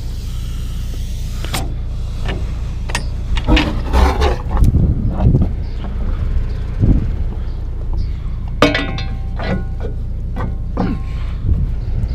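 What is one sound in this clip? Metal couplings clank and knock as a hose is handled.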